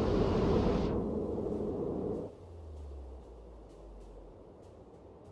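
Shells explode in the water with deep booms.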